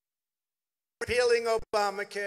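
A man speaks forcefully through a microphone and loudspeakers.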